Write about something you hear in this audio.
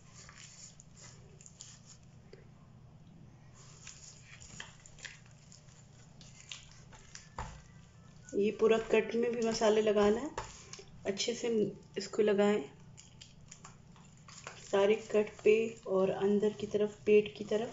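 Gloved hands squish and slap wet fish in a thick paste.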